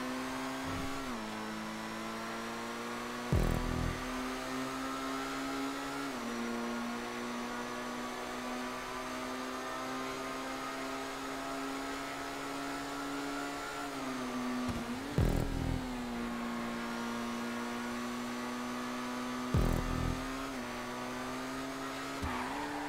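A racing car engine drones at high speed, its pitch shifting with gear changes.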